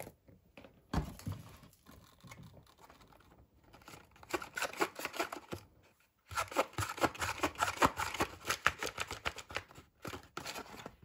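A cardboard box scrapes and rubs under fingers.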